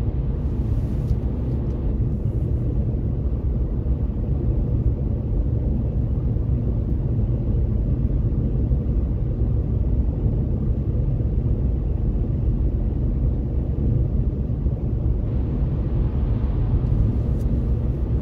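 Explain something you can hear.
Tyres hiss on asphalt.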